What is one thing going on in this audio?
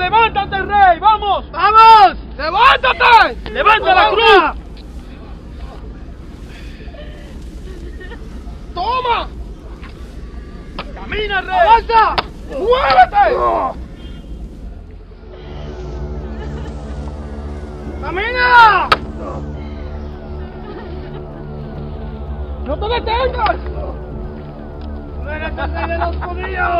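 A woman wails and cries out loudly nearby.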